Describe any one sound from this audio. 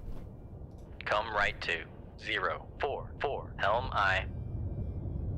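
A man speaks calmly and close into a microphone.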